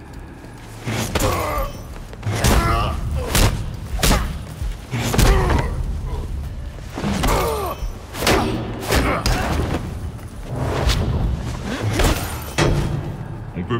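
Heavy blows thud and clang against a metal shield.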